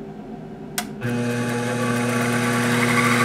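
A small motor spindle whirs with a steady hum.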